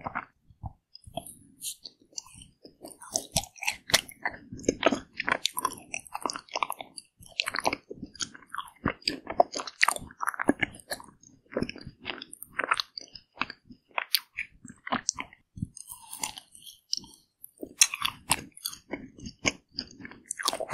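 A woman bites into an ice cream bar with crisp, cracking crunches close to a microphone.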